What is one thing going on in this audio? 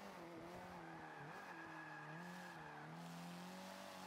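Tyres squeal as a car slides through a corner.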